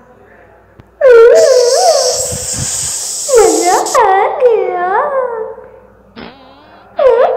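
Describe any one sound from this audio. A creature screeches in loud, wavering wails.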